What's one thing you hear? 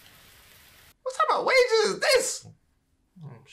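A young man exclaims loudly with animation, close by.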